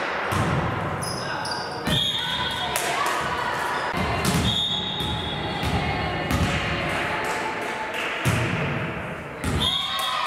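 A volleyball thuds against hands and the floor in an echoing hall.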